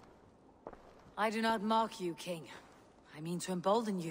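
A younger man answers calmly.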